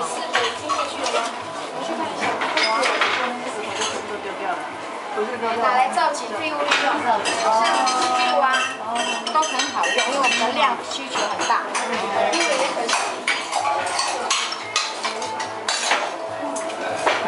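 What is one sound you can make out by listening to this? Several men and women chat in a room nearby.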